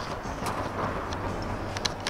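Footsteps run across a hard surface.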